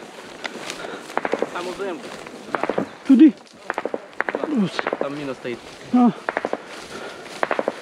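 Footsteps crunch through dry wheat.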